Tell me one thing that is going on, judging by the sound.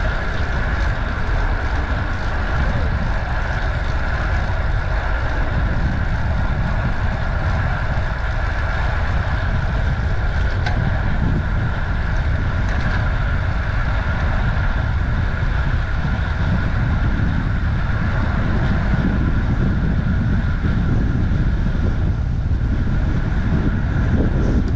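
Wind rushes loudly past as a bicycle rides along.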